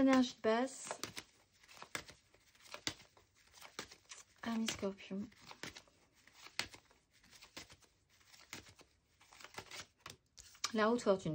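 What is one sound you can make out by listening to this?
Playing cards riffle and shuffle in a pair of hands.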